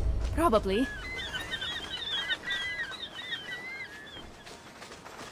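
Birds chirp and squawk nearby.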